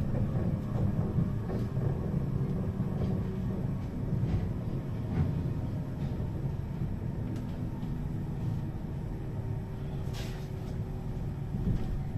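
A bus interior rattles and creaks over the road.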